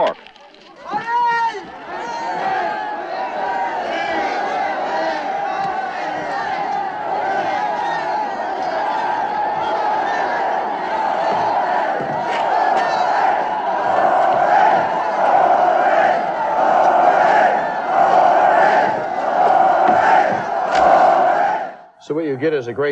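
A large crowd of men cheers and chants loudly outdoors.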